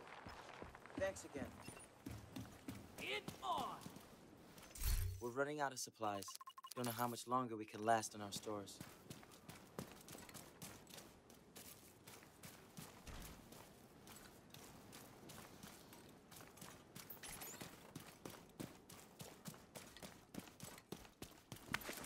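Footsteps crunch quickly over grass and gravel.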